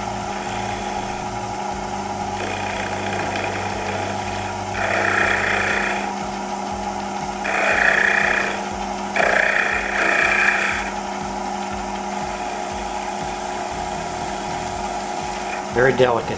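A lathe hums steadily.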